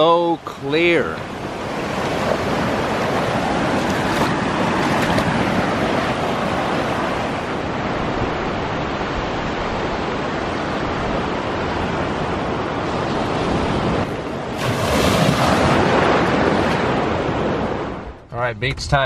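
Shallow waves wash and fizz over sand.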